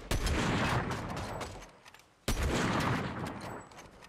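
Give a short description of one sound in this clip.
A rifle shot cracks once.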